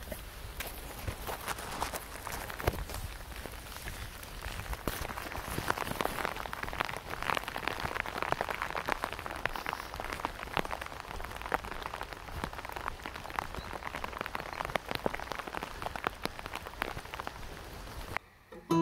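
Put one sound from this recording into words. Raindrops patter close by on a fabric hood.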